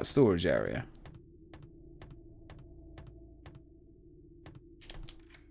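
Footsteps tap steadily on a hard metal floor.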